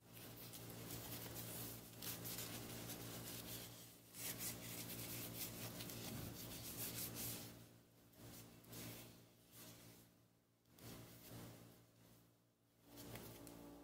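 A cloth rubs and wipes along a knife handle.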